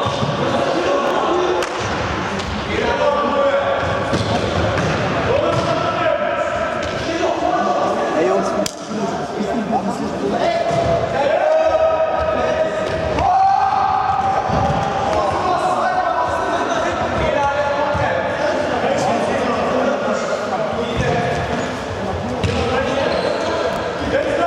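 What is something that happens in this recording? Children shout and call out across a large echoing hall.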